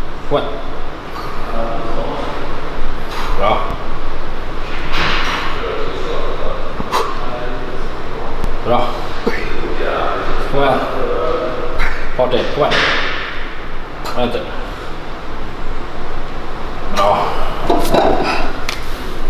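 A young woman breathes out hard with effort.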